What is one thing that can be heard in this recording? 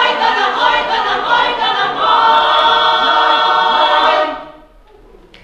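A choir of women sings together in a large hall.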